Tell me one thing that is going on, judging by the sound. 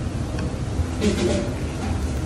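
A young man bites and chews crunchy food.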